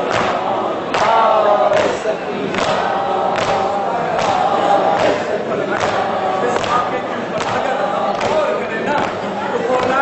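A crowd of men beats their chests in a steady rhythm.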